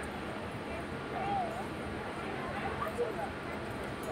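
People chatter softly outdoors.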